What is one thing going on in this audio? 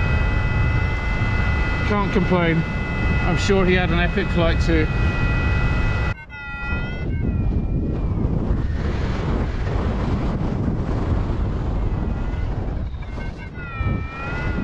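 Strong wind rushes and buffets past loudly.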